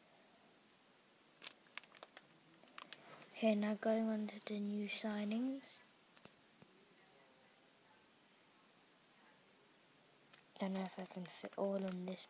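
Plastic album pages crinkle and rustle as they are turned.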